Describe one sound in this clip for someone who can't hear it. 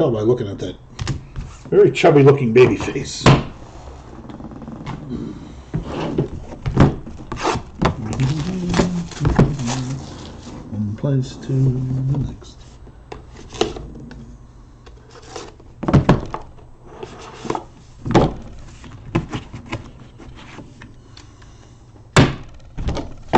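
A plastic card case clacks and taps against a table.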